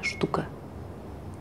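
A young woman speaks quietly and close by.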